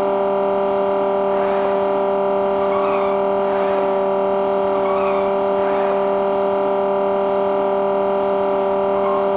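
A car engine drones steadily at high speed.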